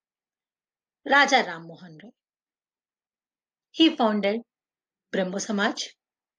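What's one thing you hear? A young woman speaks calmly into a microphone, in short phrases with pauses.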